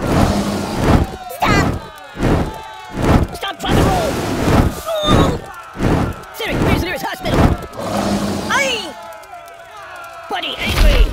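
Flames roar in repeated bursts.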